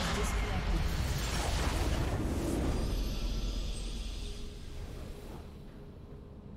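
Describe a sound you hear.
A deep magical explosion roars and slowly fades.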